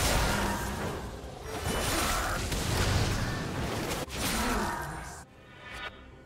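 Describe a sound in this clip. Magical blasts and clashing effects burst loudly in a fast-paced battle.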